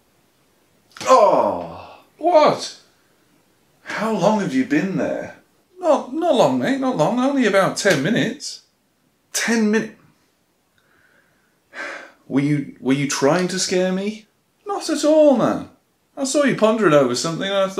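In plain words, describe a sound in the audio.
A man speaks calmly and close by, with pauses.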